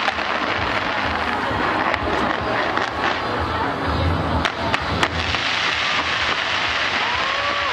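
Fireworks crackle and pop continuously.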